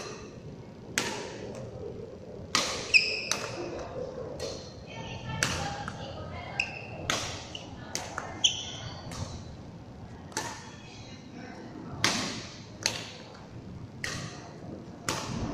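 A racket strikes a shuttlecock with sharp pops, echoing in a large hall.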